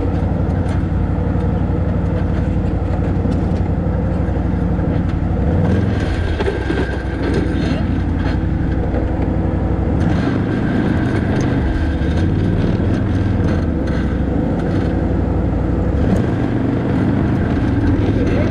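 A quad bike engine idles with a low, steady rumble.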